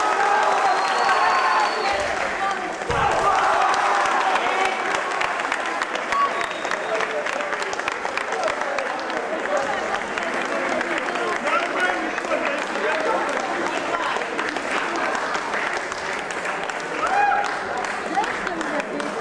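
A crowd of men and women chatters in an echoing hall.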